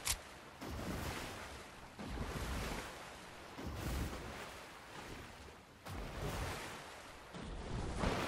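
Water splashes in rhythmic swimming strokes.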